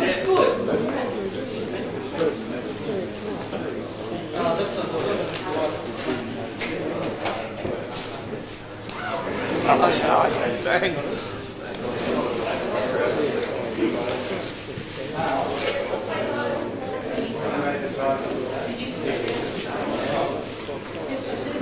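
A murmur of men and women chatting fills a hall.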